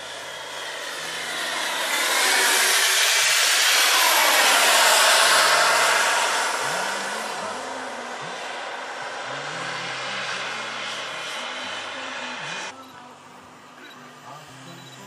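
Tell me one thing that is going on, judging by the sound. A jet airliner roars overhead, swelling loud and then slowly fading away.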